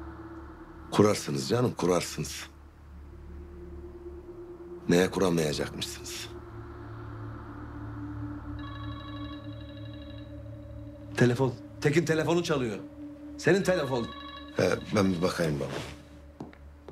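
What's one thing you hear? A middle-aged man speaks forcefully and with animation, close by.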